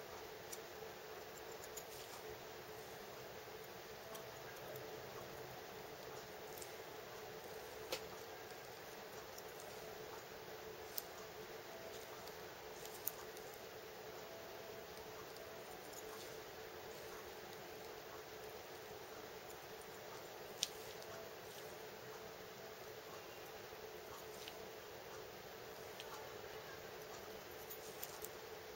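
A metal instrument taps and scrapes faintly against a hard plaster model.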